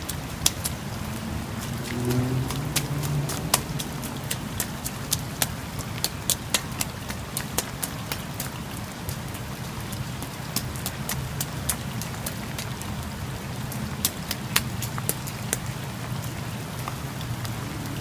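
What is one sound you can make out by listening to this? A small child's footsteps splash on wet stone.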